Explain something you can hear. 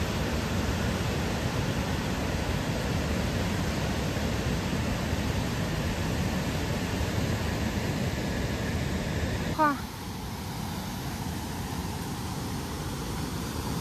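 Water rushes loudly over a weir.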